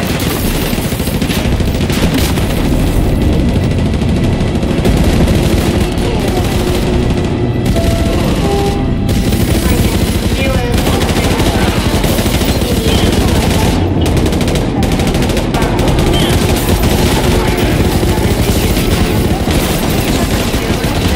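Machine guns fire in rapid, relentless bursts.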